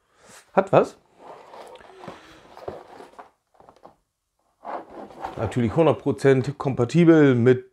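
A cardboard box rustles and scrapes as hands turn it over.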